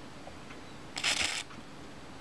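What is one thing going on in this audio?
An aerosol can sprays in a short hiss.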